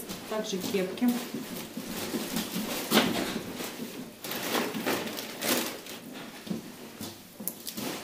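Knitted hats rustle and thump softly as they are gathered and moved.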